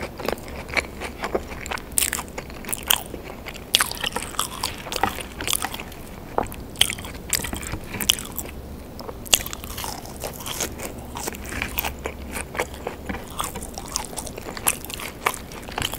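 A young woman chews crunchy food close to a microphone, with wet smacking sounds.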